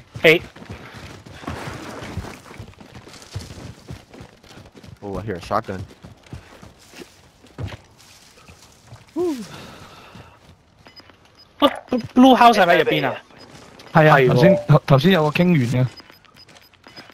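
Footsteps thud over grass and dirt.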